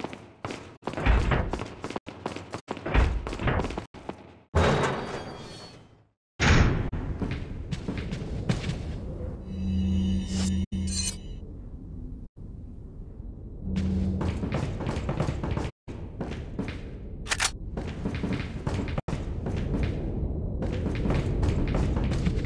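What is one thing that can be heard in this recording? Footsteps run across a hard stone floor.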